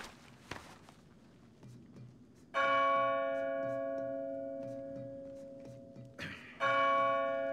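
Hands shuffle along a metal pipe.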